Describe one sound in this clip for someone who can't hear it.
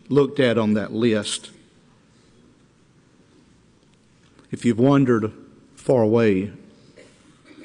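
A middle-aged man speaks with emphasis through a microphone, in short bursts with pauses.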